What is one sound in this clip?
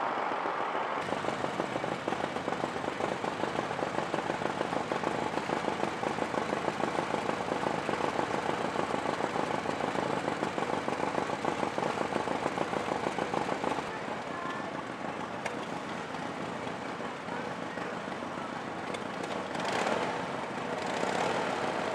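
A motorcycle engine idles with a steady, rapid putter.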